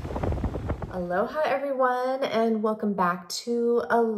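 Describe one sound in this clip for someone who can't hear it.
A middle-aged woman speaks warmly and close to a microphone.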